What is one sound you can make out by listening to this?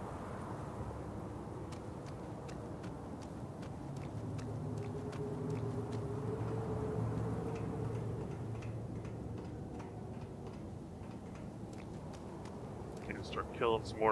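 Footsteps run over soft ground.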